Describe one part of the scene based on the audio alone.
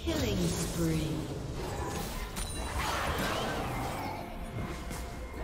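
Game spells and hits crackle and whoosh in a fast fight.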